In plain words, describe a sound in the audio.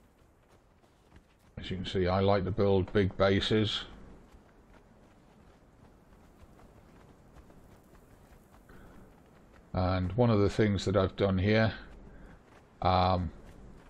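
Footsteps run over soft sand.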